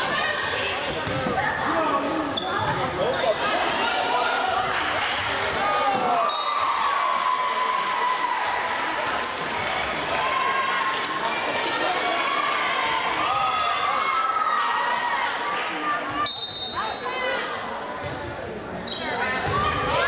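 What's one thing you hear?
A volleyball thumps against hands and arms.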